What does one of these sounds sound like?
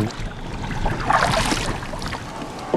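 An oar splashes into the water.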